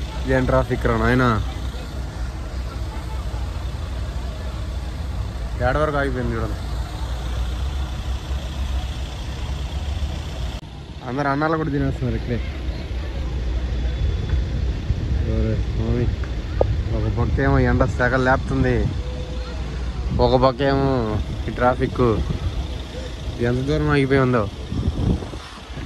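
Idling engines rumble low and steadily.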